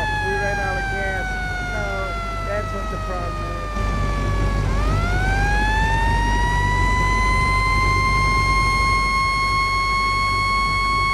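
A siren winds down, then rises and holds a steady wail.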